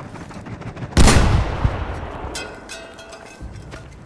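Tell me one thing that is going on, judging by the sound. A large explosion booms nearby and rumbles away.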